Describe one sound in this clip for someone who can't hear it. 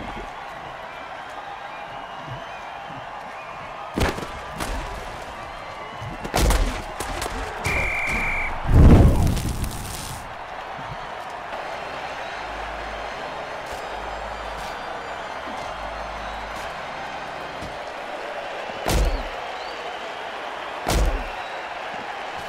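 A large crowd roars steadily in a big stadium.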